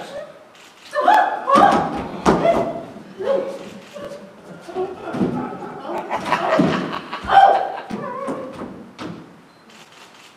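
A man sings loudly with animation on a stage.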